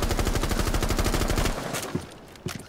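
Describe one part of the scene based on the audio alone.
A rapid burst of gunfire rattles loudly.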